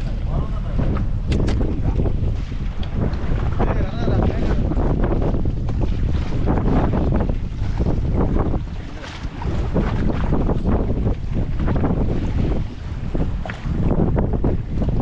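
Wind blows hard across the open sea.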